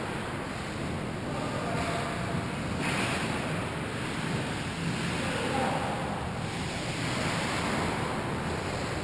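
Ice skates scrape and hiss across ice in a large echoing hall.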